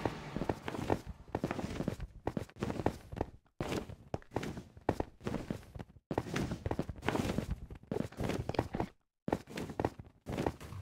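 Footsteps tap lightly on hard ground.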